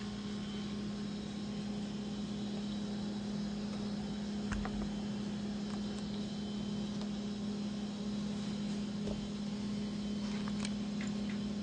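A burrowing owl rustles its wing feathers as it spreads its wings.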